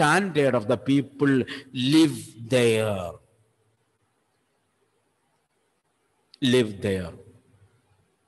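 An elderly man speaks calmly, close to a microphone.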